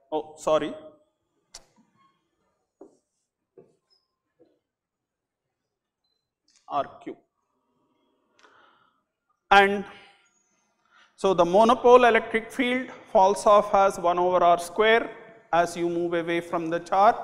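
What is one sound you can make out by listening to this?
An elderly man speaks into a microphone, explaining calmly.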